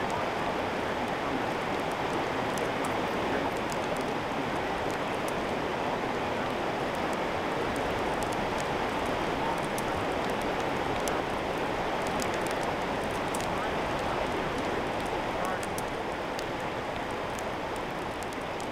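A fire roars steadily with a rushing hiss.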